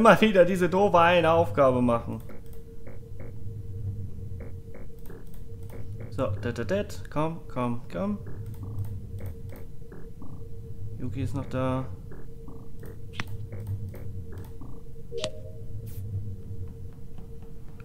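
Game buttons beep softly as they are pressed, one after another.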